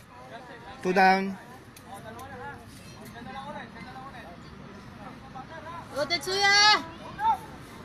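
Young ballplayers shout loudly across an open field.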